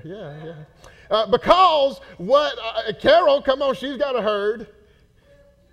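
A man preaches loudly and with animation through a microphone in an echoing hall.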